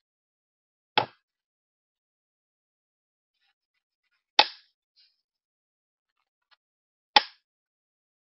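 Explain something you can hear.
A knife chops on a wooden board.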